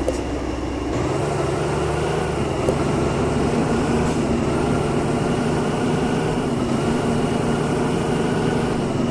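A heavy truck engine runs steadily and rises in pitch as the truck drives off.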